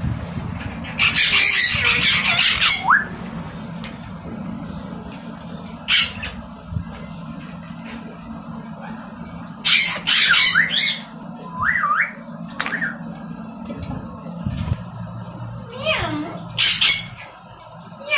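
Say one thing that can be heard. A parrot screeches loudly in short bursts.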